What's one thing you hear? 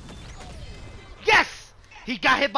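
A punch sound effect lands with a loud hit in a video game.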